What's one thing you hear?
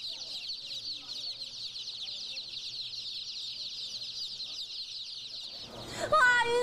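Many chicks peep rapidly and shrilly, close by.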